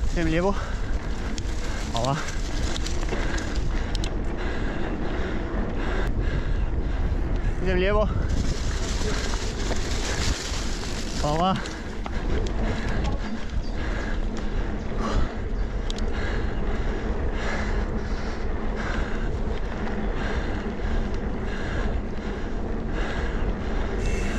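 Bicycle tyres rumble and crunch over a bumpy dirt trail.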